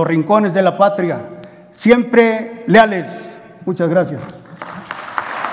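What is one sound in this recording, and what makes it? An older man speaks formally into a microphone in a large echoing hall.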